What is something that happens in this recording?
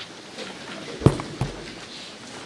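A microphone thumps as it is handled.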